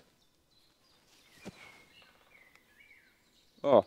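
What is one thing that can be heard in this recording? Footsteps rustle through dry fallen leaves.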